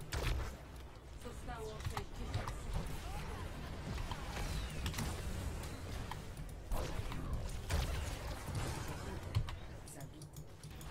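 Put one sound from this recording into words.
Blasts and zaps of a video game battle crackle rapidly.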